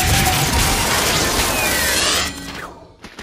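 A powerful energy beam blasts with a loud, hissing roar.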